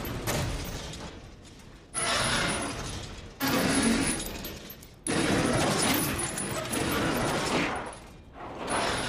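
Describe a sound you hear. A metal shutter rattles loudly as it is hauled up by a chain in short jerks.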